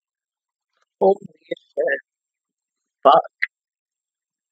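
A young woman speaks a few short words close to a microphone.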